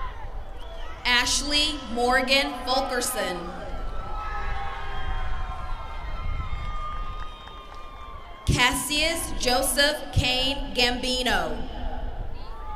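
A woman reads out names over a loudspeaker, echoing outdoors.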